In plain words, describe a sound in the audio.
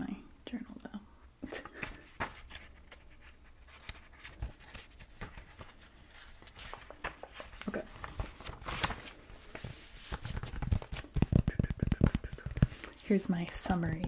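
A young woman whispers close to a microphone.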